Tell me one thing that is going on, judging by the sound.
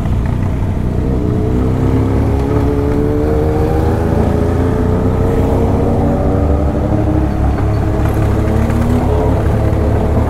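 A motorcycle engine revs higher as the motorcycle speeds up.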